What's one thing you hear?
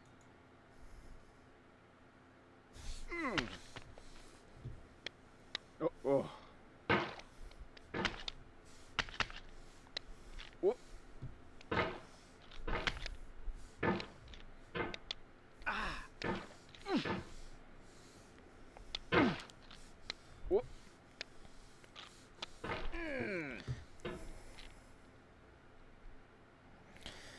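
A metal hammer clanks and scrapes against rock.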